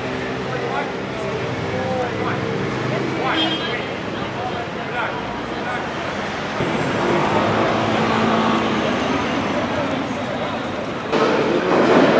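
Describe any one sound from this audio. A crowd murmurs on a busy street outdoors.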